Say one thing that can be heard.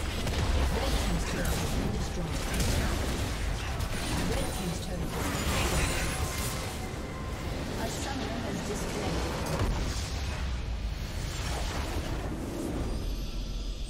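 Game combat sounds clash and explode rapidly.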